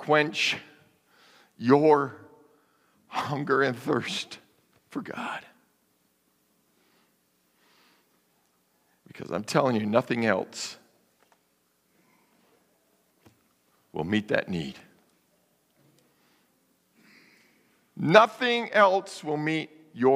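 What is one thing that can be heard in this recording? A man speaks with animation through a microphone in a large echoing hall, pausing between phrases.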